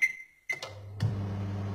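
A microwave oven starts up and hums steadily.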